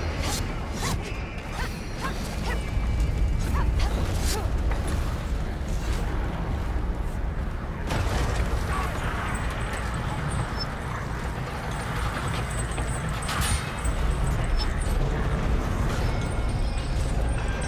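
Blades swish and clash as swords are swung.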